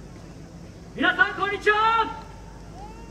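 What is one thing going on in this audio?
Young performers shout loudly together through loudspeakers outdoors.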